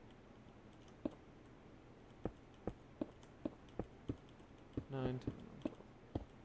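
Blocks are placed with short soft clicks.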